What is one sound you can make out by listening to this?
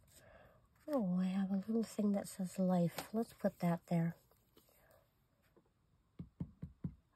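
Paper cutouts rustle softly as they are handled.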